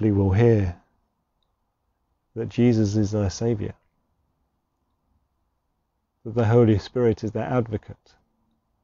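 A man speaks calmly and clearly to a microphone, with pauses between phrases.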